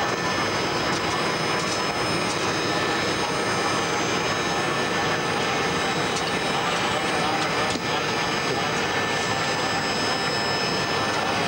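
A steady loud whir of fans and machinery fills the space.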